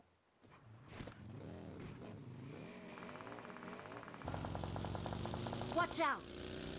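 A buggy's engine revs and drives off.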